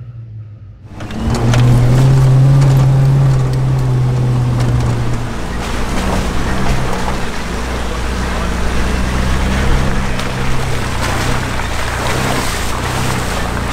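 A car engine drones loudly from inside the cab.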